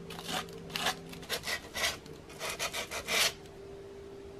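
Sandpaper rubs in short, scratchy strokes against wood.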